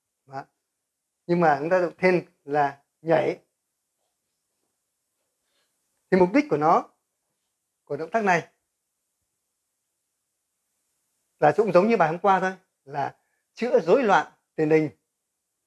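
An elderly man speaks calmly and close into a small microphone, in short bursts with pauses.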